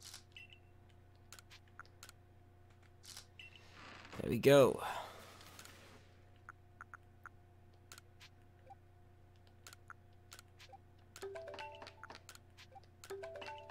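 Short electronic menu blips tick repeatedly.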